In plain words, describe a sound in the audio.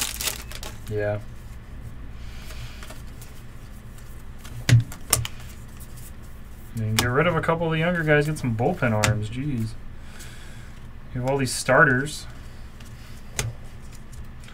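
Trading cards rustle and slide against each other as they are flipped.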